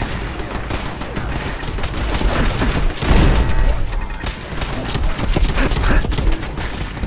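Laser beams zap and crackle.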